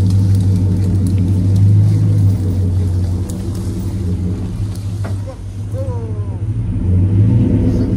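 A vehicle engine idles with a steady low hum nearby.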